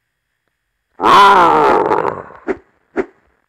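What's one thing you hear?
A monster lets out a loud, deep dying roar.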